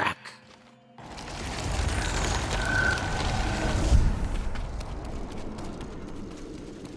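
A deep rushing roar swells and bursts, then fades.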